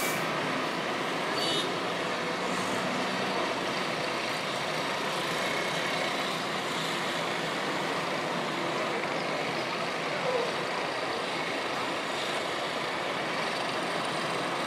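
Distant town traffic hums steadily.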